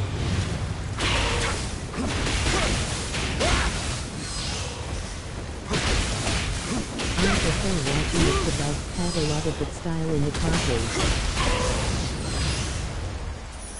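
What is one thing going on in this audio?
Fiery bursts explode with loud cracks.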